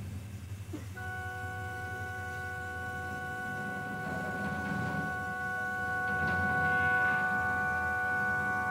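An electric guitar plays sustained notes.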